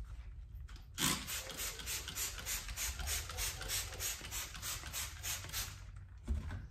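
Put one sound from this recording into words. A spray bottle hisses in quick, even bursts.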